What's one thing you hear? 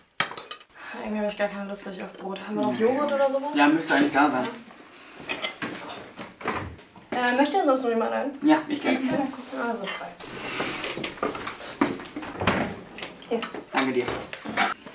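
A young woman talks casually nearby.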